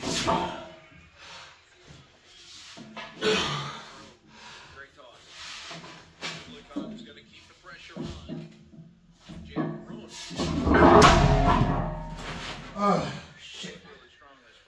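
A man grunts and breathes hard with effort.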